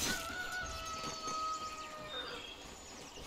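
Fantasy spell effects chime and whoosh during a fight.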